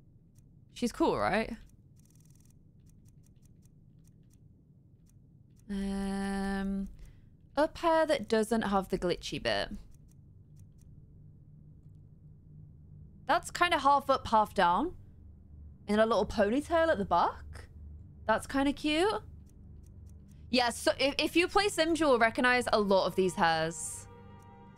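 A young woman talks with animation into a close microphone, in bursts.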